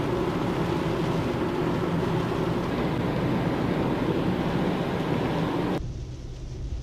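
Wind and rain roar loudly against a microphone.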